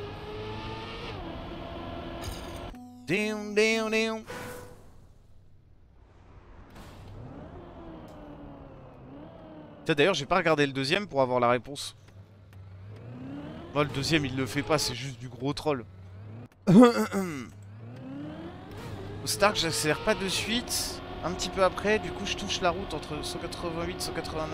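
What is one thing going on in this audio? A race car engine whines and revs up and down.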